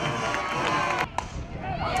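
A group of young women cheers and shouts outdoors.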